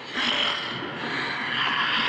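A creature snarls and growls fiercely.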